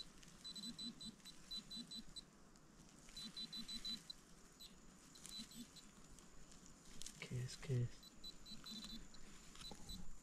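A man's hands scrape and rustle through soil and dry leaves.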